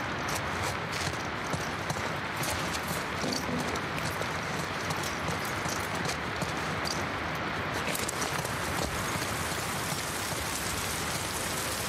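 Footsteps tread slowly across a hard floor indoors.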